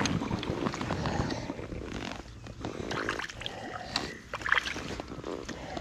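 A fishing reel clicks as line is wound in.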